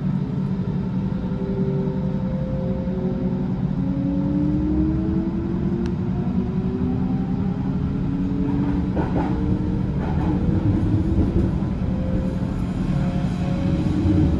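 An electric train motor whines, rising in pitch as the train speeds up.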